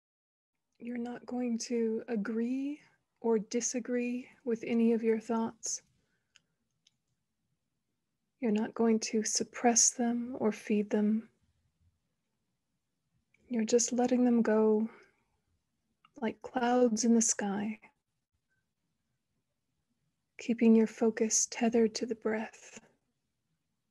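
A young woman speaks slowly and calmly in short phrases through an online call, with long pauses.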